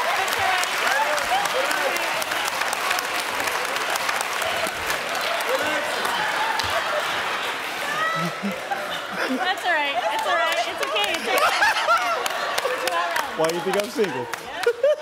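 An audience claps, cheers and laughs loudly.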